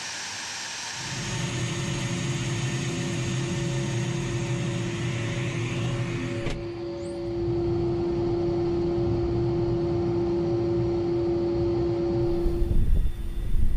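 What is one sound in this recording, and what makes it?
A jet engine whines steadily close by.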